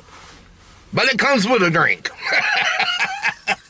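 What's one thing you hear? A middle-aged man laughs loudly.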